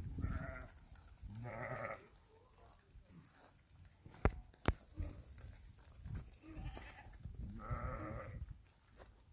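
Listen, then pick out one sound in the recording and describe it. Hooves patter on dirt as a flock of sheep walks.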